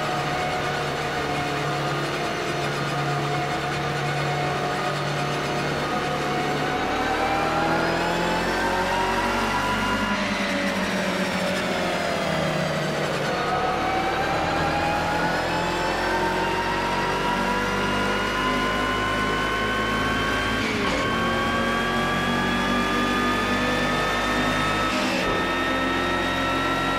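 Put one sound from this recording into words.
A racing car engine hums steadily, rising in pitch as it speeds up and dropping as it slows.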